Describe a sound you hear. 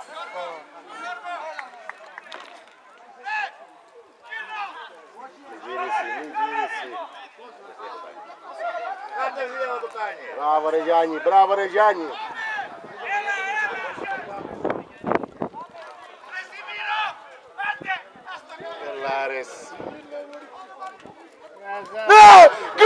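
Young men shout to each other outdoors, some way off.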